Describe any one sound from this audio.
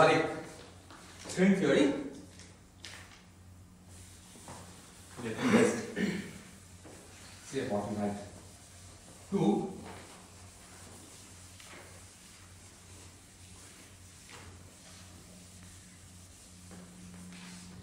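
A cloth wipes across a chalkboard.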